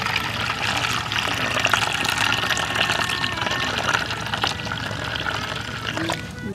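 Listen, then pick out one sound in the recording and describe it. Water pours and splashes into a basin.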